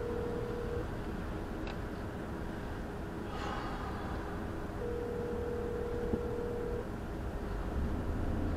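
A car engine idles quietly.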